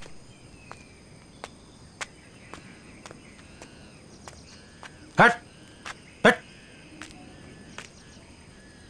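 Footsteps crunch slowly on dry ground.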